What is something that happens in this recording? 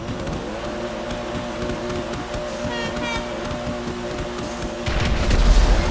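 A race car engine idles and revs loudly.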